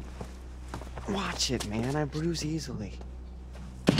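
A young man complains loudly nearby.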